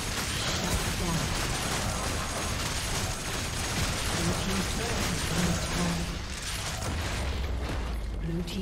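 Game spells and attacks crackle and blast in a fight.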